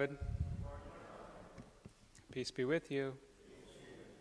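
A man speaks calmly into a microphone in a reverberant hall.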